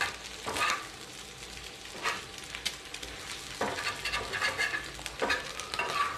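A metal spatula scrapes and taps against a pan, breaking up scrambled egg.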